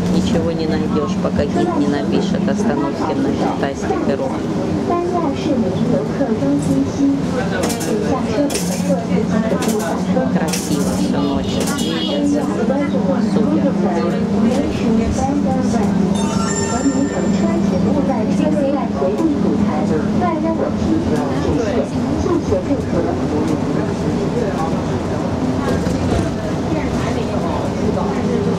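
A bus engine hums steadily from inside the bus as it drives.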